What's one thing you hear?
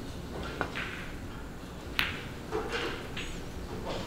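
A snooker ball knocks against a cushion.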